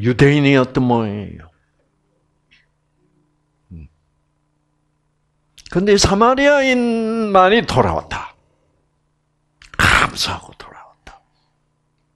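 An elderly man speaks with animation through a headset microphone, pausing between phrases.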